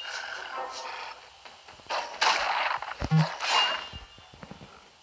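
Wolves snarl and growl during a fight.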